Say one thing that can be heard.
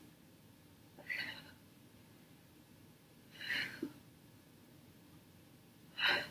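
A young woman breathes out hard with effort.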